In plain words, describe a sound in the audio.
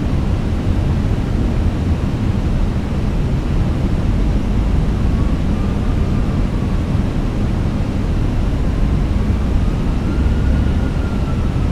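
A jet airliner's engines rumble steadily in a low, even roar.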